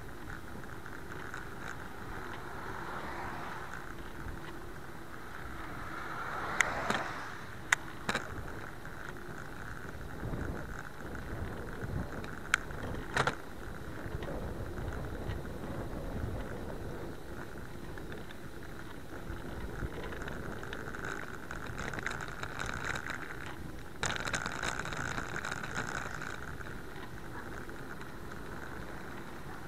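Wind rumbles steadily.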